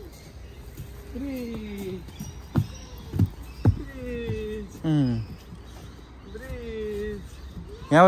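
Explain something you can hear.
Footsteps thud on a wooden boardwalk.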